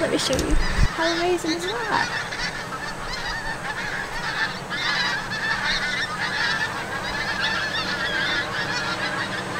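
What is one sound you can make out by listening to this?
A large flock of geese honks overhead, many calls overlapping.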